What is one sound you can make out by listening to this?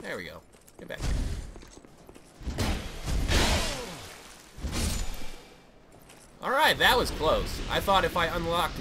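Heavy sword blows strike with dull thuds.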